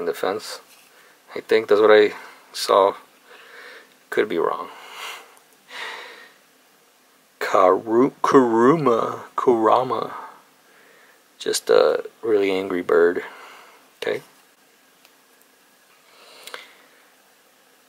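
Playing cards rustle and slide as they are handled.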